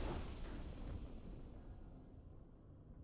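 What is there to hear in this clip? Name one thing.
A bright game victory chime rings out and slowly fades.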